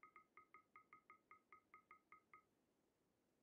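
Short electronic beeps tick quickly in a row, then stop.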